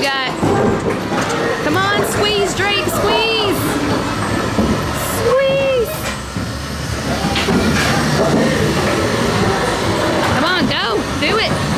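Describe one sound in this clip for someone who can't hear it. A boy shakes the handles of an arcade strength game, which rattle and clunk.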